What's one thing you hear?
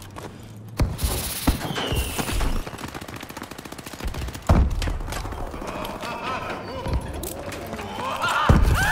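Gunshots crack sharply, one at a time.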